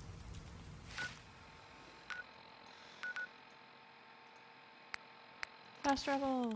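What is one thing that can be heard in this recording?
Short electronic beeps and clicks sound.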